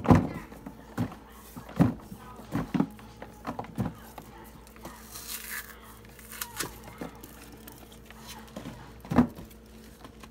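Chunks of dry clay crumble and thud into a plastic tub.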